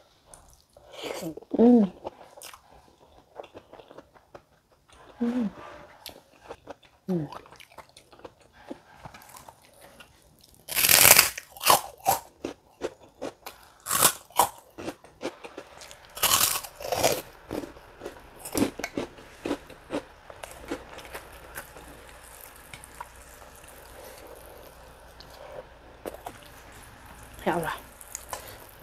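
A young woman hums with pleasure between bites.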